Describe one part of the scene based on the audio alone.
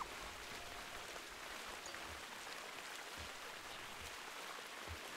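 Water trickles in a shallow stream.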